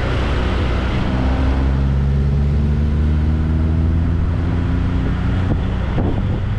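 A car engine rises in pitch as a car passes close by.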